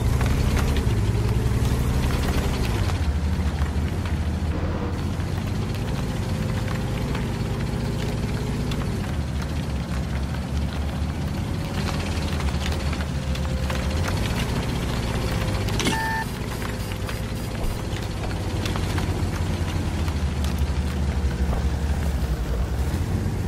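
Tank tracks clank and rattle.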